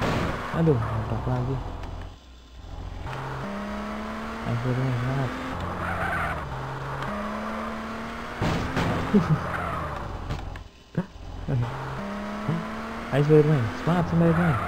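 A car engine revs and roars.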